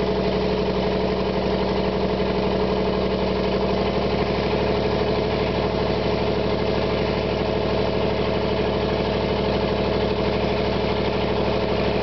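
Large tyres crunch through loose sand.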